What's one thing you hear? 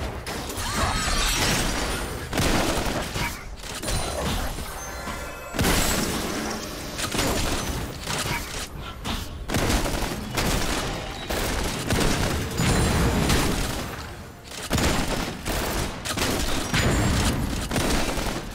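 Video game combat effects whoosh and crackle in quick bursts.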